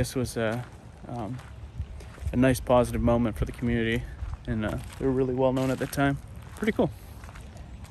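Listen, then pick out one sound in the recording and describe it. A man speaks calmly close to a microphone, outdoors.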